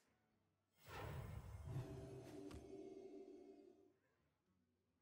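A fiery blast booms and crackles.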